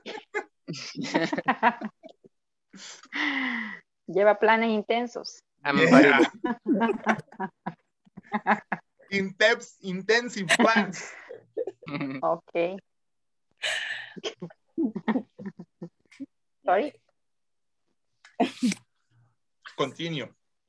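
A young woman laughs and speaks over an online call.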